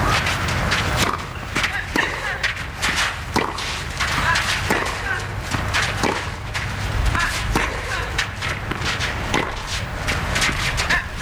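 Tennis rackets strike a ball back and forth in a steady rally.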